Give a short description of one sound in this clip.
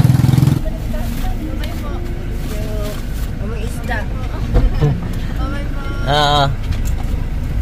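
Young women laugh and chat just outside a car window.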